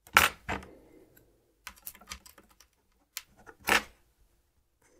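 A plastic pry tool scrapes and clicks against a device's casing.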